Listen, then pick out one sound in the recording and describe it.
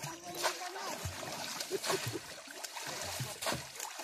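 Fish splash into shallow water as a basket is tipped out.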